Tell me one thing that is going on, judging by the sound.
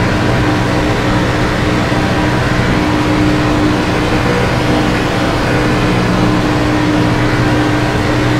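A race car engine roars loudly at high, steady speed.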